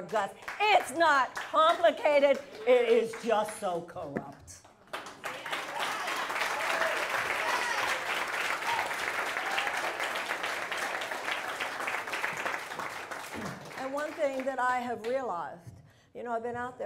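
A middle-aged woman speaks forcefully into a microphone.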